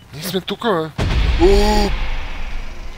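A young man screams loudly in fright.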